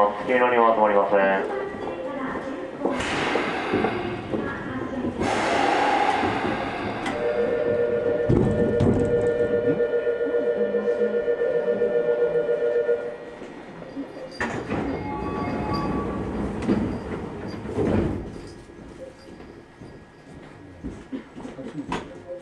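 A subway train hums and rumbles.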